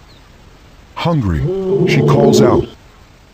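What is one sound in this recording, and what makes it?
A lioness growls loudly up close.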